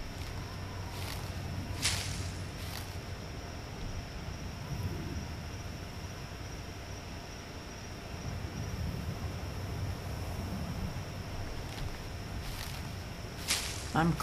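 Leafy plants rustle sharply as berries are picked.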